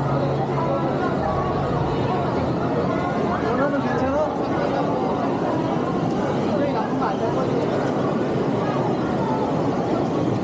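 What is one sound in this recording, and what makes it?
A crowd of adults and children chatters in a busy, echoing indoor hall.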